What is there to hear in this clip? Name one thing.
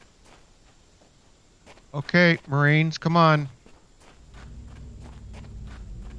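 Footsteps crunch on grass and dirt.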